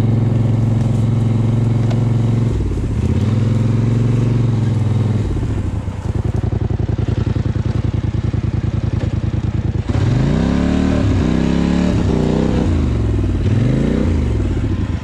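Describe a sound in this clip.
A quad bike engine rumbles close by, revving up and down as it climbs.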